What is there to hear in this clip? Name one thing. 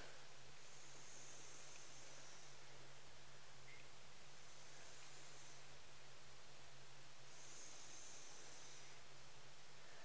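A marker squeaks faintly across a whiteboard in short strokes.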